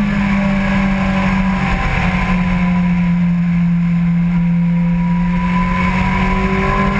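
A motorcycle engine drones steadily at high speed, its pitch dipping slightly then rising.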